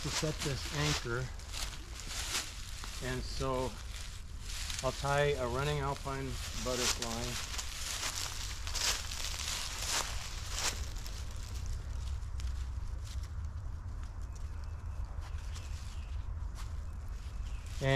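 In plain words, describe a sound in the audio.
A rope rustles and slides against a tree trunk.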